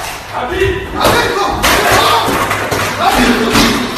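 A chair crashes down onto stairs.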